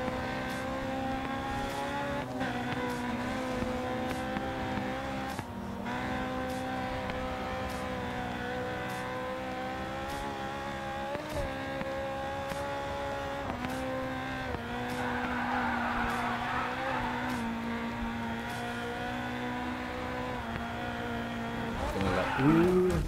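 A racing car engine roars at high speed, its pitch rising and dropping with gear changes.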